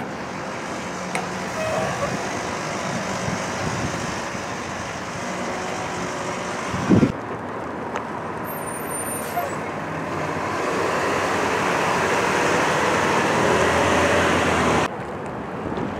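A dump truck drives slowly past.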